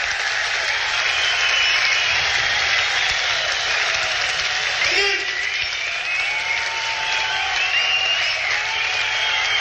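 An electric guitar plays a wailing solo with bending notes through a loud amplifier.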